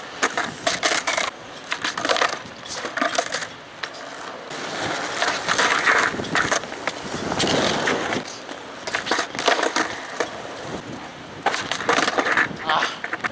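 A skateboard deck snaps and clatters on concrete.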